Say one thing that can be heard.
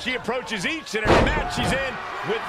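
A body slams hard onto a ring mat.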